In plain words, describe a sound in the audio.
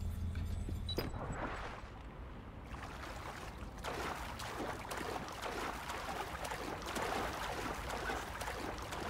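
Water splashes and sloshes as someone swims.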